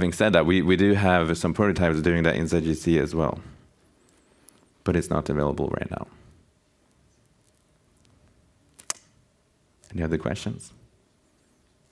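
A young man speaks calmly into a microphone, with pauses.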